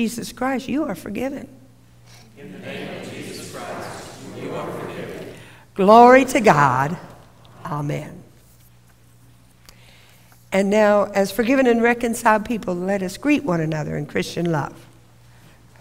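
An elderly woman speaks expressively through a microphone in a large echoing hall.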